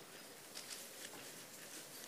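A cloth rubs across a blackboard.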